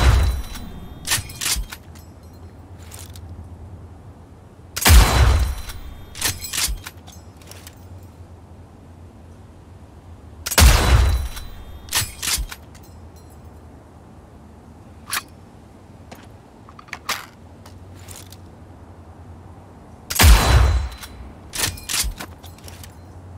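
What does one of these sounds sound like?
A rifle bolt clacks as it is worked between shots.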